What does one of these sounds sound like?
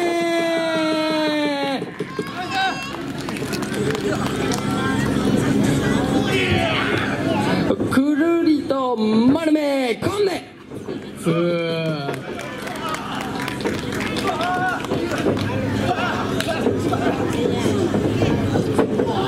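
Young men shout and grunt with strain close by.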